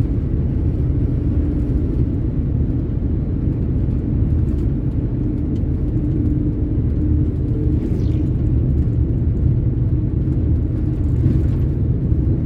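A vehicle's engine hums steadily while driving on a road.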